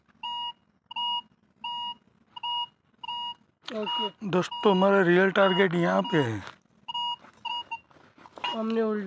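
A metal detector beeps in short, even pulses, then with a longer tone.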